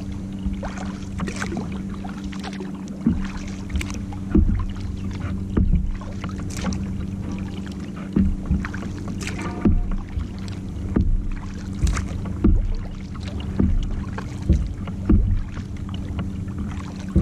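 Water drips from a paddle blade.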